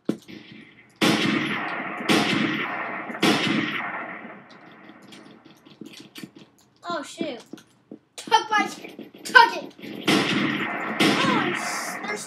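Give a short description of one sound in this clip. A video game sniper rifle fires with echoing booms.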